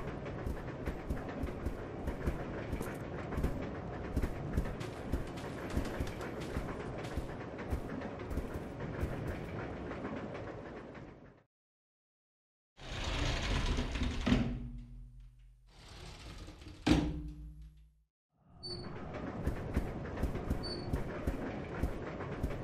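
A train car rattles and rumbles steadily.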